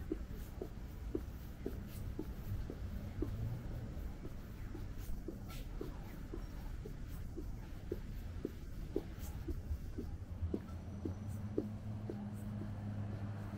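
Footsteps tap steadily on pavement close by.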